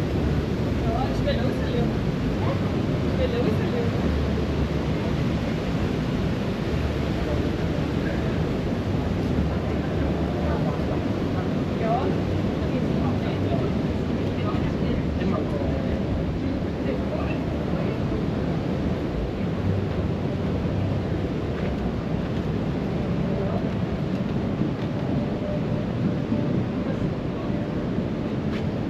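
A crowd of people murmur and chat nearby.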